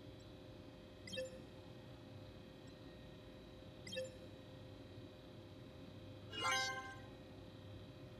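Electronic interface tones chirp briefly a few times.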